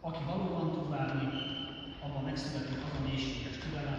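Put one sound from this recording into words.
A violin plays a slow melody in an echoing hall.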